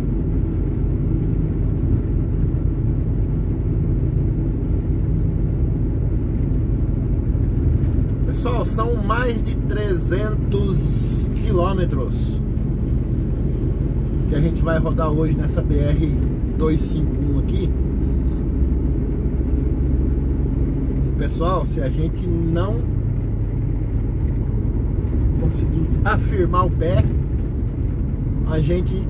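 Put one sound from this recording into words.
A vehicle rumbles steadily along a road.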